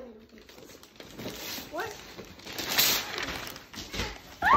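Wrapping paper rips and crinkles.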